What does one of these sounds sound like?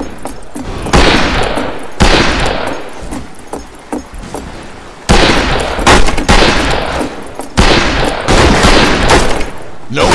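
A revolver fires loud shots.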